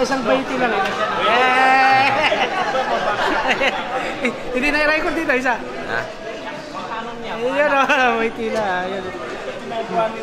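A young man talks excitedly close by.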